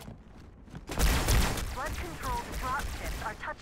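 An energy weapon fires with a loud crackling burst.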